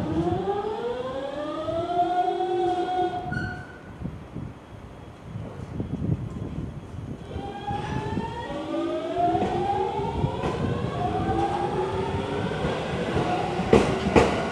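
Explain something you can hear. An electric commuter train's motors whine, rising in pitch as the train pulls away.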